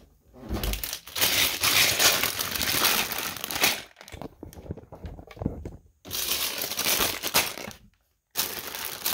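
Plastic toy bricks rattle inside a bag.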